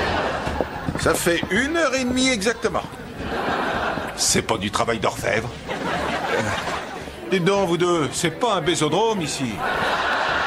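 An adult man speaks clearly and close by.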